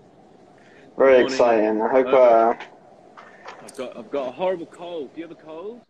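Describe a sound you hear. A man speaks loudly with animation over an online call.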